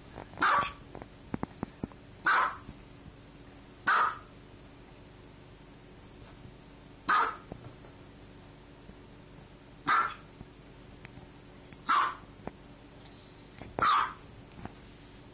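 A small dog barks sharply, in short single yaps.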